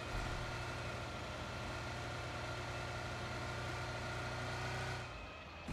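A car engine drones steadily.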